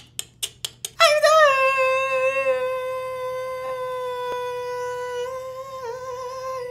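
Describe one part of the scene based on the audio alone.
A young man sings a long, high held note close by.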